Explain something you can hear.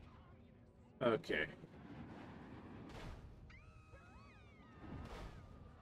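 A loud energy blast bursts with a deep whoosh.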